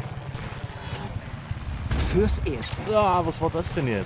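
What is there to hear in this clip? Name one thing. A helicopter's rotor thumps close by.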